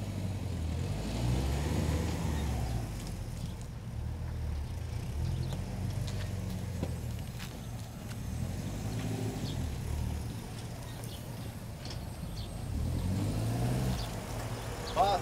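An elderly man talks calmly outdoors.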